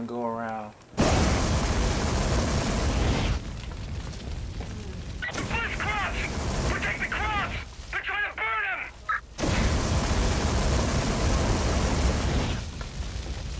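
A flamethrower roars in loud bursts.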